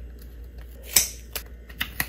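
Scissors snip through tape.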